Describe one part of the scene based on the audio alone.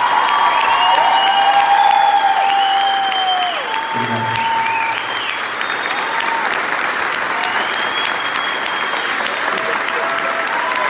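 An orchestra plays.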